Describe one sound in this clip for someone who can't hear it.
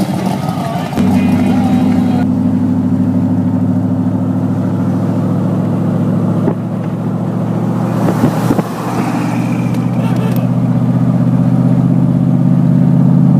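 A car engine drones steadily while driving.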